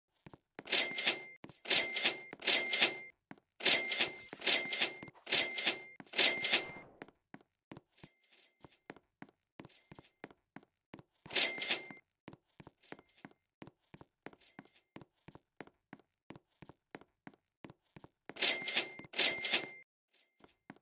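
Bright cash-register chimes ring in quick bursts.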